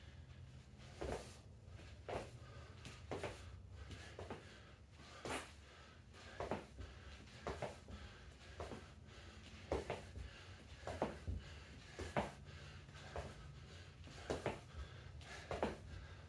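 Sneakers thud and land on a hard floor in quick steps.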